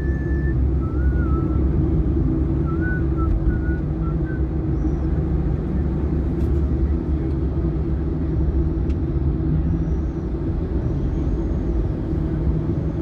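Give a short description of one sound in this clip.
A car engine hums steadily while driving on a highway.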